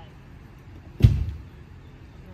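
A plastic pool knocks against the ground with a thump.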